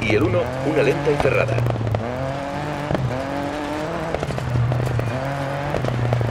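A rally car engine revs hard, rising and falling in pitch as it shifts gears.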